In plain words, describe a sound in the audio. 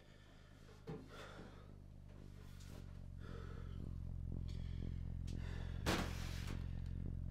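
A man shifts things about close by with soft knocks and rustles.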